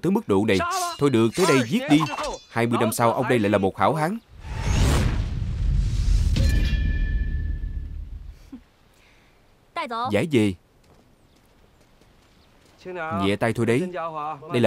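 A middle-aged man speaks loudly and with animation, close by.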